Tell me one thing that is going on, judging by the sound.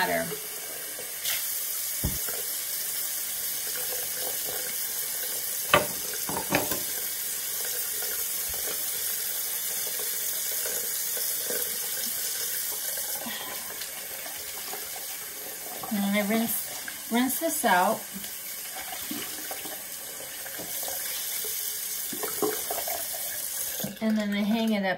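Water runs steadily from a tap into a basin.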